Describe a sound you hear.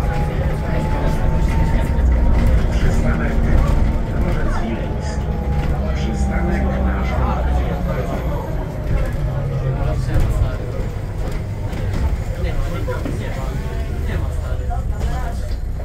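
A bus engine hums low and steady from inside the cabin.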